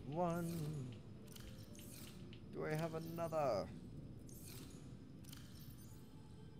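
A handheld device's interface opens and closes with soft electronic swooshes.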